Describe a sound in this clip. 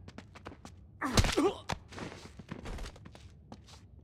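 A man is struck in a scuffle.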